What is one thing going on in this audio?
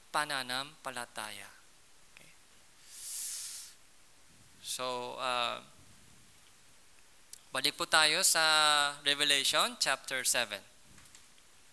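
A man speaks calmly and closely through a headset microphone.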